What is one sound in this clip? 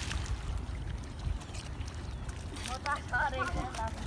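A boy jumps into the water with a splash.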